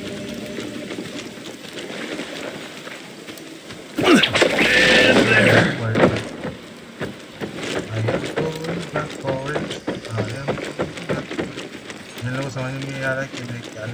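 Footsteps crunch as a figure runs.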